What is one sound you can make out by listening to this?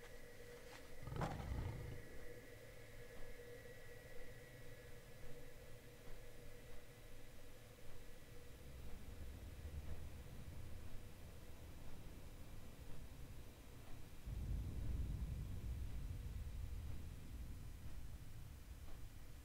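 Wind rushes past in low gusts.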